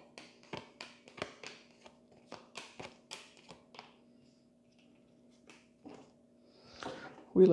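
Playing cards shuffle and slap softly onto a table.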